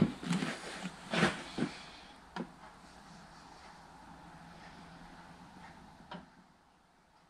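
Liquid pours steadily from a plastic jug into a container.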